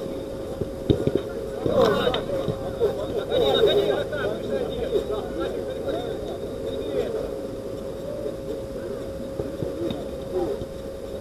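Young men shout and call out to each other across an outdoor pitch.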